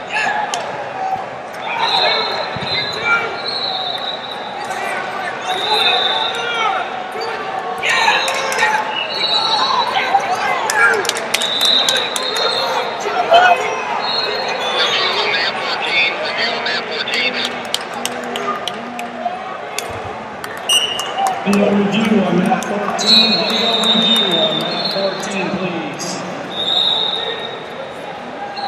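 Coaches shout instructions loudly from the side.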